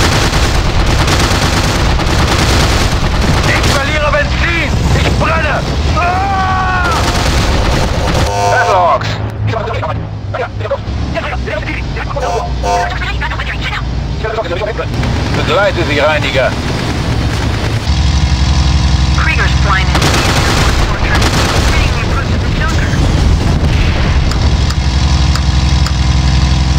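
A Bf 109 propeller fighter plane's engine drones.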